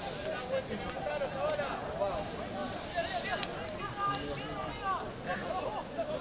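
Young men shout and call to each other outdoors on an open field.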